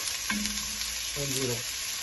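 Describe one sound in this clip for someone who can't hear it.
A wooden spoon stirs food in a pot.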